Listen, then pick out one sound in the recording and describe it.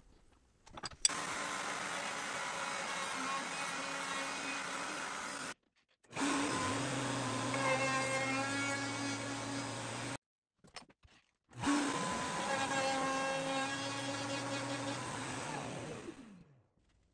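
A router motor hums and whines steadily.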